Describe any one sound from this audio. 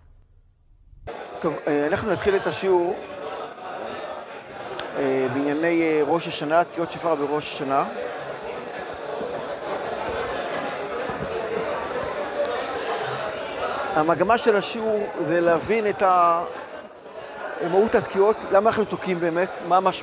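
An elderly man speaks calmly and at length, close by.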